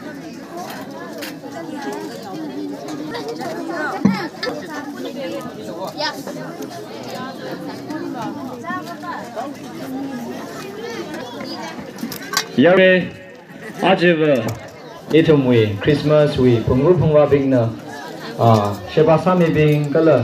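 Several adults and children chatter around the room.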